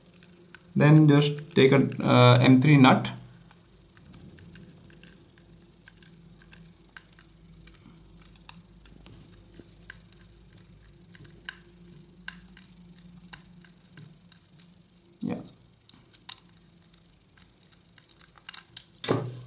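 A screwdriver turns small screws with faint clicks and scrapes.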